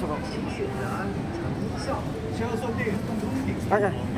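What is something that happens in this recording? A young man talks quietly close by.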